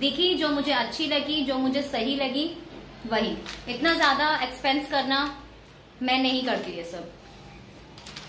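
A young woman talks animatedly close to the microphone.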